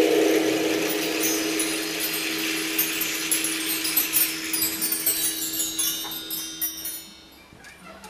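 Bar chimes are swept by hand and shimmer.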